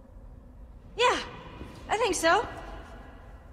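A young woman calls out with urgency.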